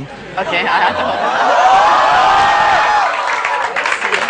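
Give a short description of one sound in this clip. A crowd cheers and whistles loudly.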